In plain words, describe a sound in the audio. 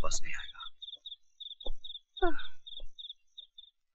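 A woman speaks briefly on a phone.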